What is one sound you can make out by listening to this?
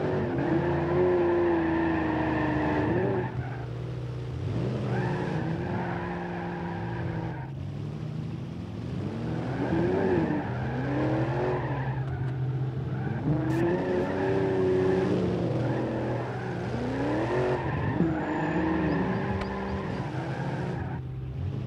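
A car engine revs up and down, rising and falling in pitch.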